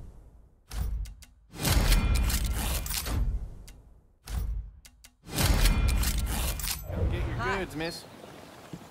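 Game menu sounds whoosh and click as selections are made.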